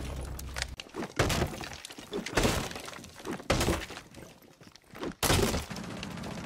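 A wooden wall splinters and cracks apart.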